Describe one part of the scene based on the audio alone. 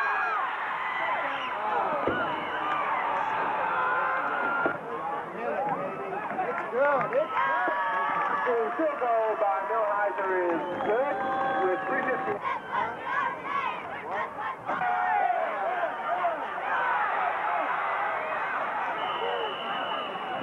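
A crowd cheers and shouts loudly in an open stadium.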